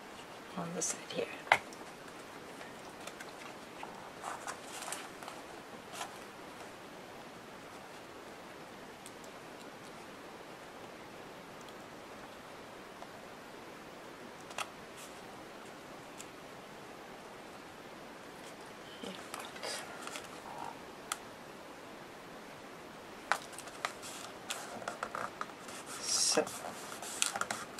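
Paper rustles and crinkles as hands handle it.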